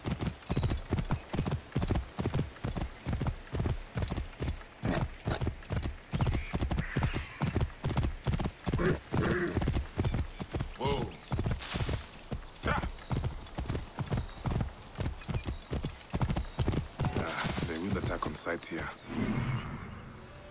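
Horse hooves clop steadily on dirt and stone.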